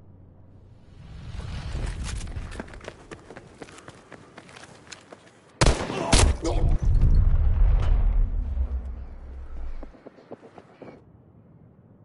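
Gunfire crackles in a video game.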